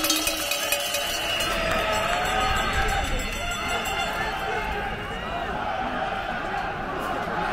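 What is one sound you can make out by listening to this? A speaker's voice booms over loudspeakers across an open square.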